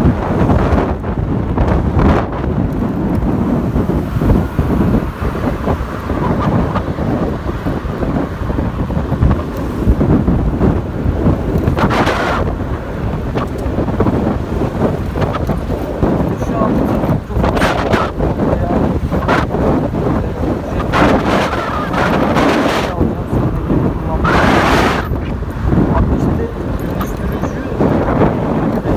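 Wind rumbles loudly, close by.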